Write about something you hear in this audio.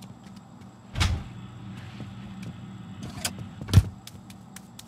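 A refrigerator door opens and shuts.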